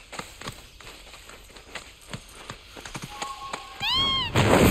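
A large bird's feet patter quickly on the ground.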